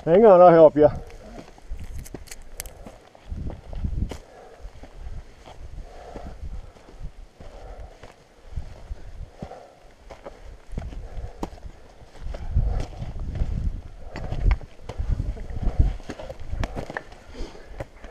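Boots scrape and crunch on loose rock.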